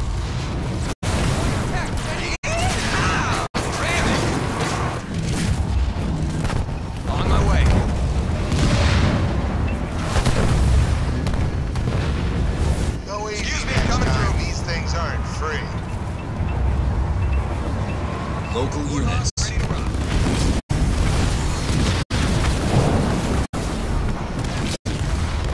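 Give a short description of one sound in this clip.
Rapid gunfire and laser blasts crackle in a battle.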